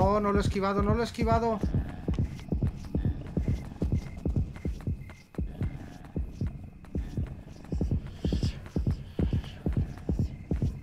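Footsteps tap steadily on pavement.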